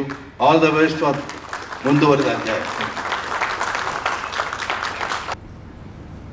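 An older man talks animatedly into a microphone over loudspeakers.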